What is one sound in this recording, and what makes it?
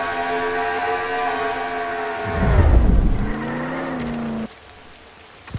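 A car engine roars at high speed, then winds down as the car slows.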